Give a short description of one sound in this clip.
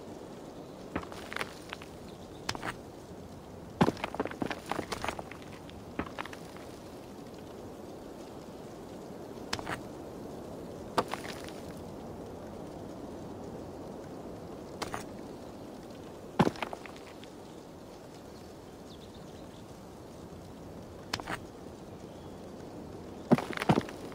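Stones clack and knock as they are set down on one another.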